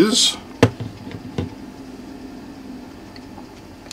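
A small clock is set down on a hard plastic lid with a light knock.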